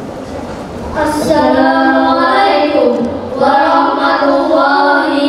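A young boy chants melodically through a microphone in a large echoing room.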